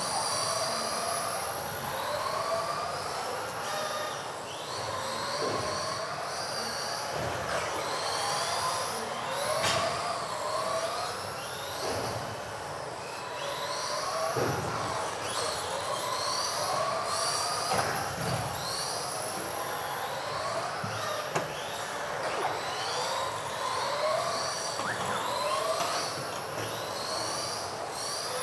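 Small electric model cars whine at high pitch, rising and falling as they race around an echoing hall.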